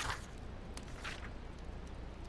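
A soft paper swish sounds as a book page turns.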